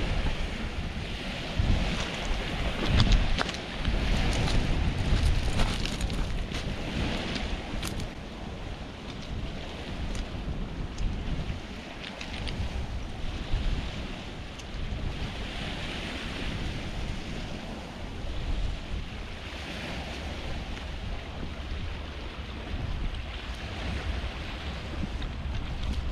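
Small waves lap and wash onto a pebble beach.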